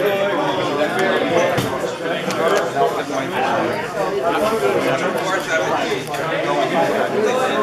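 Playing cards slap down on a table.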